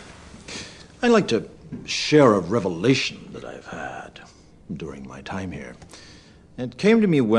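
A middle-aged man speaks slowly and calmly, close by.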